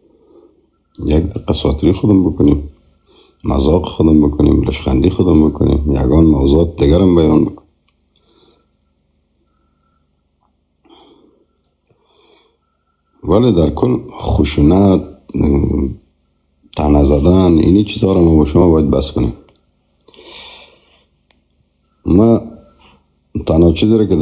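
A man speaks calmly and close to a microphone, in bursts with pauses.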